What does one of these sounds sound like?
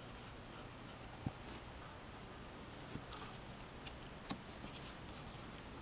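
Cardboard pieces tap together as they are pressed into place.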